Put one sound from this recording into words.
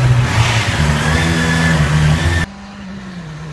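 A motorcycle engine revs loudly up close.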